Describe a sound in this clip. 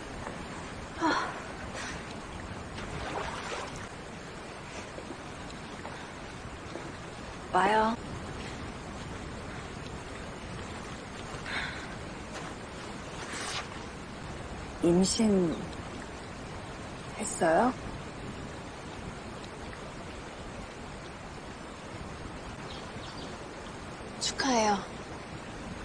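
Two young women speak softly in short phrases, close by.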